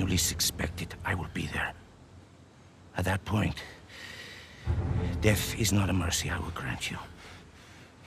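A middle-aged man speaks slowly and menacingly, close by.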